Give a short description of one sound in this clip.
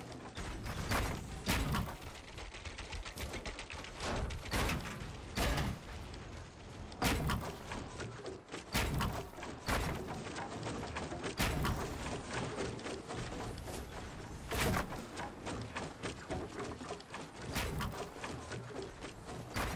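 Building pieces snap into place with quick clattering thuds.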